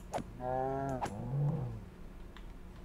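A creature squeals in pain as a sword strikes it.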